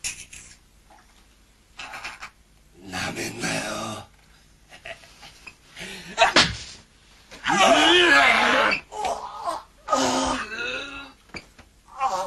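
A man grunts and chokes up close.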